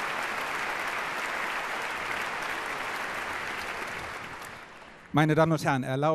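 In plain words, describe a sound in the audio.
An audience applauds in a large hall and the applause fades.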